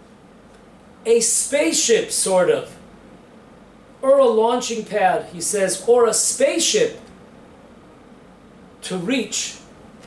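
An elderly man speaks calmly and explains, close to a microphone, with pauses.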